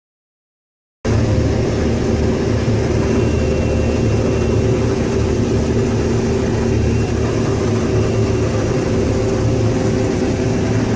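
A combine harvester engine drones steadily, heard from inside the cab.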